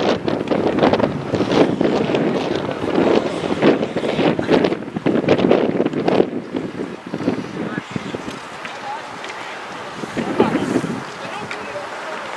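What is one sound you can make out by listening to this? Wind gusts loudly across the microphone outdoors.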